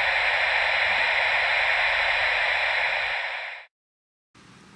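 Loud static hisses steadily, then cuts off abruptly.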